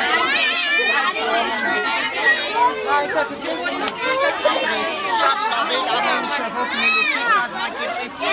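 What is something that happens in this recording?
Many young children chatter and call out nearby, outdoors.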